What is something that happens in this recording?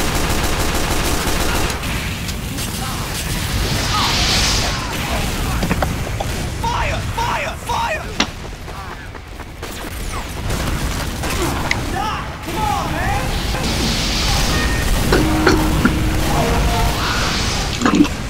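Gunshots bang in quick bursts.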